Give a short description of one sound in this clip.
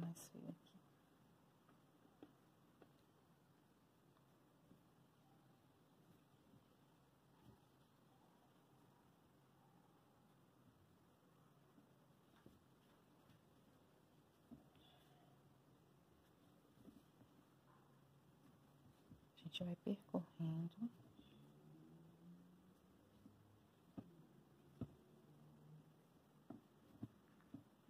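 Thick yarn rustles as it is pulled through stitches.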